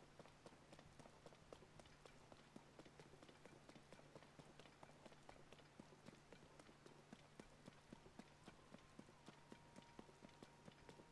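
Quick footsteps splash across wet stone.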